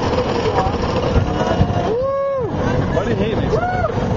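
Riders scream on a roller coaster.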